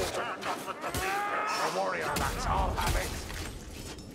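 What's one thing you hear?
Blades swing and strike with metallic clashes.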